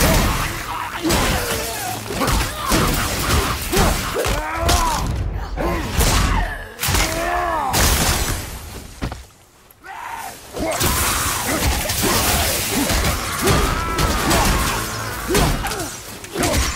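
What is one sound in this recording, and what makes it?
Heavy blows and weapon strikes thud and clang in a fight.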